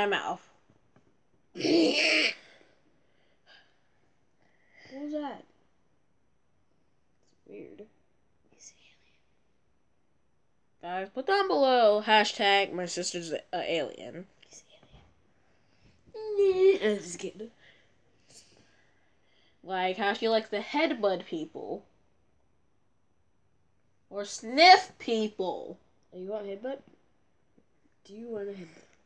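Two young girls talk with animation close by.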